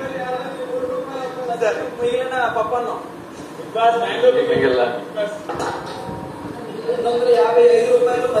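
A man talks loudly with animation.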